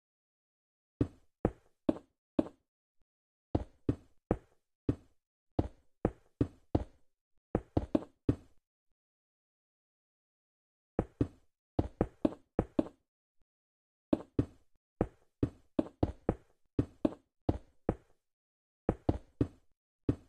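Wooden blocks are placed one after another with short hollow knocks.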